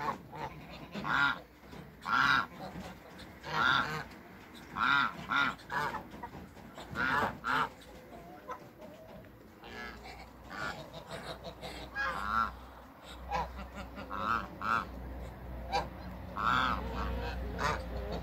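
Geese honk loudly and repeatedly nearby.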